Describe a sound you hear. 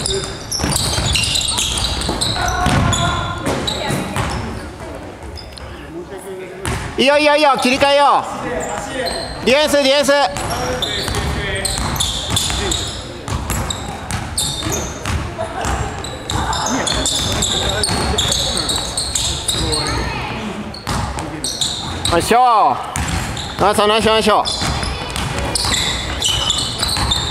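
A basketball bounces with dull thuds.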